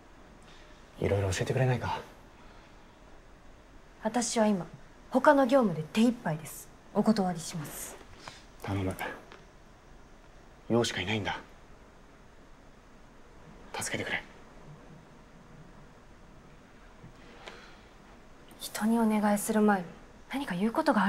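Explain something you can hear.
A young woman speaks quietly, close by.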